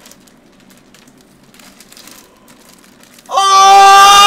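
Plastic packaging crinkles in a man's hands.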